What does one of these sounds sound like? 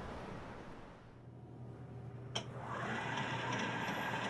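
A subway train hums steadily.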